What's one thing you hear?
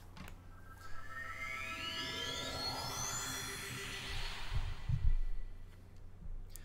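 A shimmering magical chime rises in pitch and swells.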